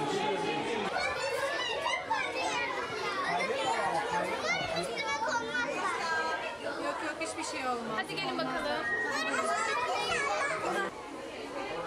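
A crowd of adults and children chatters and calls out excitedly.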